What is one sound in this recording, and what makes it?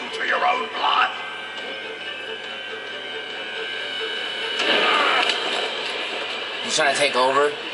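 A man shouts angrily through a television speaker.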